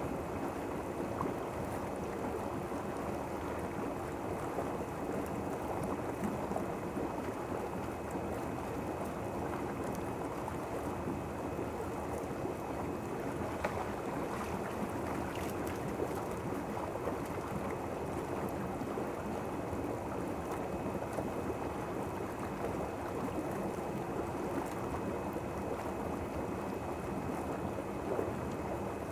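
Hot tub jets churn and bubble the water steadily.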